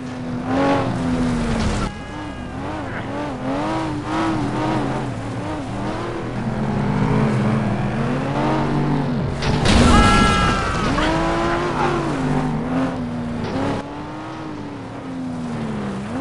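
A race car engine revs up and down.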